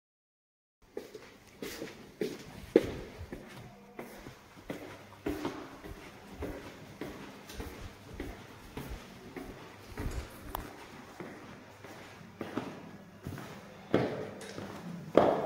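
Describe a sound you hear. Footsteps tap on a hard tiled floor, echoing slightly.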